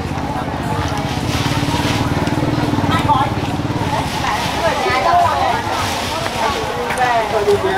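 Several women chat with animation nearby, outdoors.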